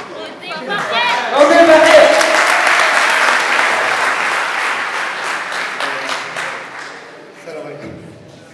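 A crowd applauds and cheers loudly in an echoing hall.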